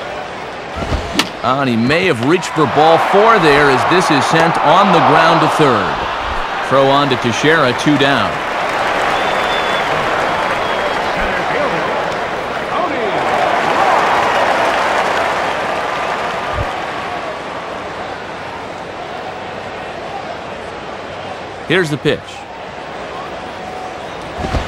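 A crowd murmurs and cheers in a large stadium.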